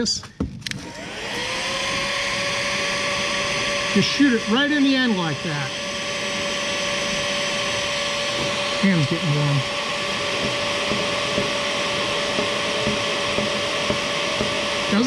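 A heat gun blows with a steady, whining hum.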